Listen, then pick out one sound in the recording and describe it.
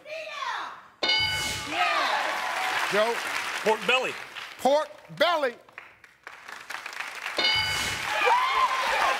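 A game board chimes with a bright ding as answers are revealed.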